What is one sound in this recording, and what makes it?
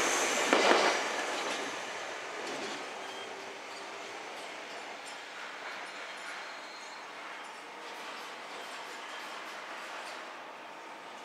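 A train's motor whines as it pulls away and fades into the distance.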